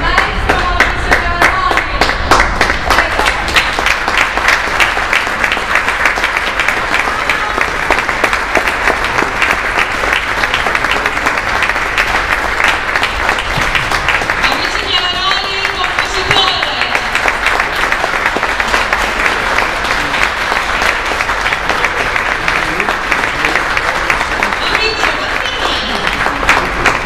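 An audience applauds loudly in an echoing hall.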